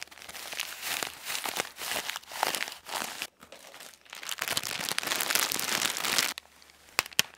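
A plastic bag of small beads crinkles and rustles close to a microphone.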